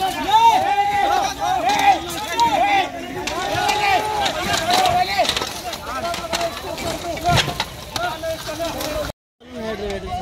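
Several men shout and talk loudly nearby.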